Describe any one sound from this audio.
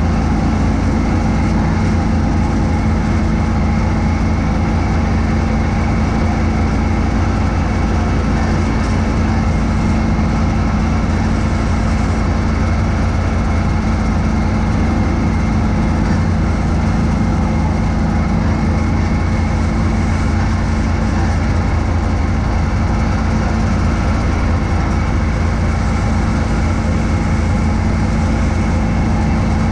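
Snow whooshes as it is thrown from a snowblower chute.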